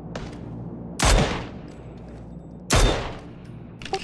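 Gunshots crack loudly, close by.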